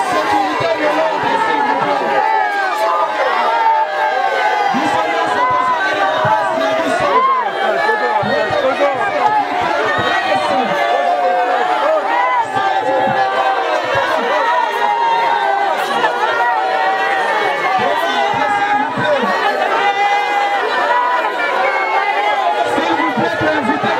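A woman wails and cries loudly close by.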